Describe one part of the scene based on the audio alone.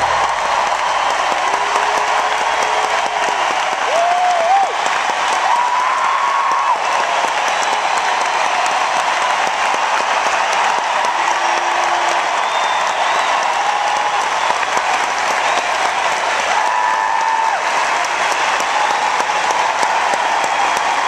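A large crowd cheers and screams in a big echoing arena.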